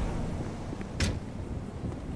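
A truck door slams shut.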